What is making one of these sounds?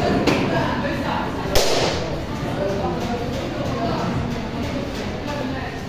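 Pool balls knock together and roll across the table.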